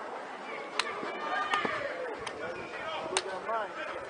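Hands slap in high fives.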